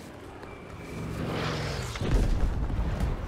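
An aircraft engine roars past.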